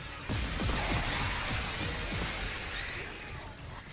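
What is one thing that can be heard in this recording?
Gunfire clatters in quick bursts.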